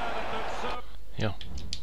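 A stadium crowd roars loudly.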